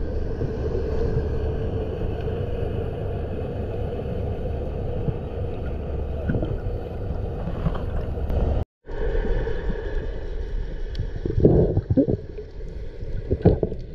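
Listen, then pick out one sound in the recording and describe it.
A steady low underwater rumble of moving water fills the recording.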